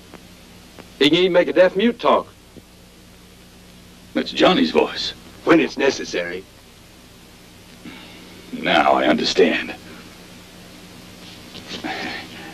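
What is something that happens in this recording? An older man speaks calmly close by.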